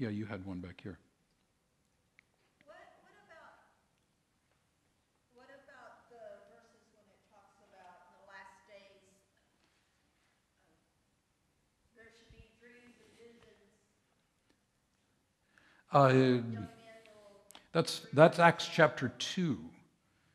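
A man speaks calmly through a microphone in a large hall, pausing often.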